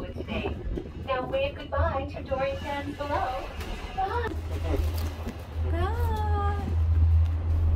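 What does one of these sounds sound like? A young woman talks animatedly close to a phone microphone.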